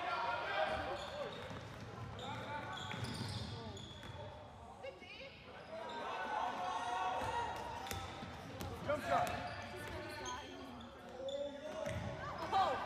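Young players shout and call out to each other in a large echoing hall.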